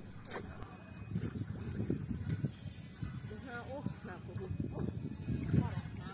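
Water splashes as a person swims close by.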